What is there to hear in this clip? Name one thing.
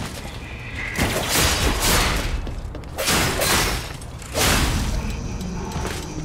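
Blades clash and whoosh in a fight.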